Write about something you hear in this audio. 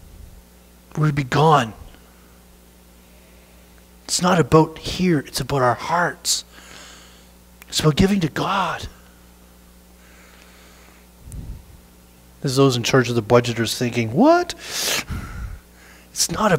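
A middle-aged man speaks with animation in an echoing room, pausing between phrases.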